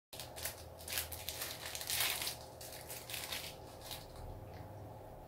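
A wrapper crinkles as it is unwrapped.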